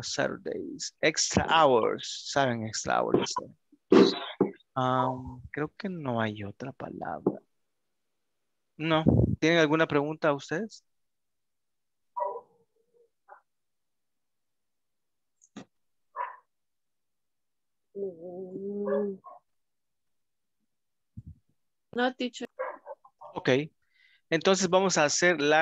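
A man speaks calmly through an online call, with pauses.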